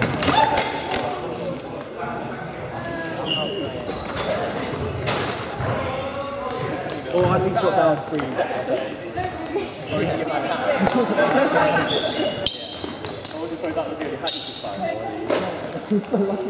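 Footsteps patter on a wooden floor as players run.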